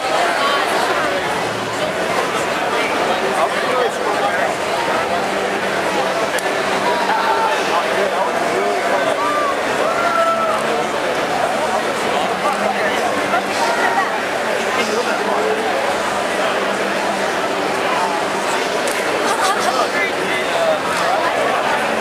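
A dense crowd of men and women talks and shouts all around, close by.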